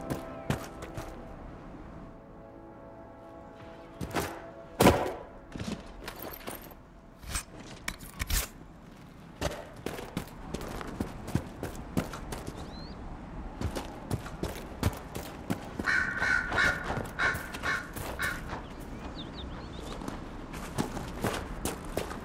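Footsteps tread along the ground.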